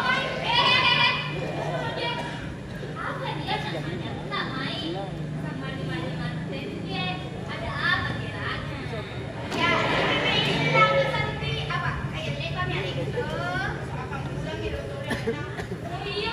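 A woman sings through loudspeakers in a large echoing hall.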